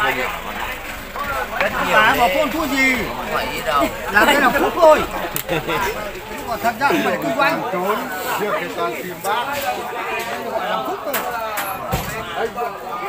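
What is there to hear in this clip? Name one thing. Several men talk loudly and over each other outdoors.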